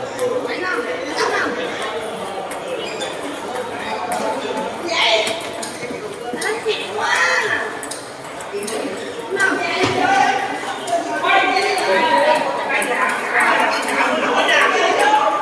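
Children and men chatter and call out in a large echoing hall.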